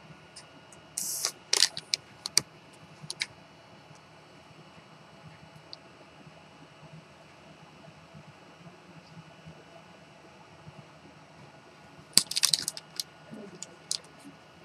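A paper slip crinkles and rustles in a hand.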